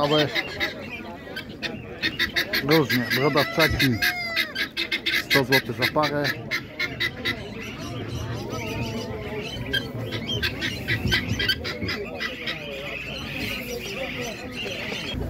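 Pigeons coo softly.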